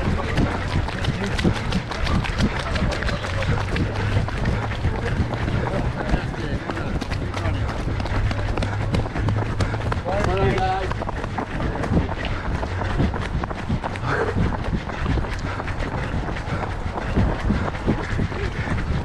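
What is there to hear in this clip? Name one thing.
Running footsteps pound steadily on a wet path.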